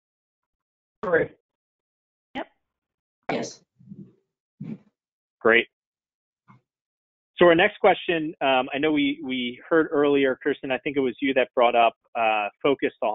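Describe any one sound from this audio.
An adult speaks over an online call, with short pauses at first and then continuously.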